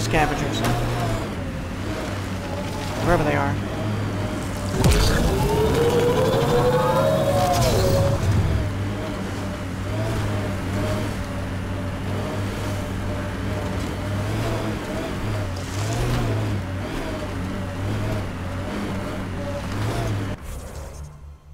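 Tyres crunch and scrape over rocky ground.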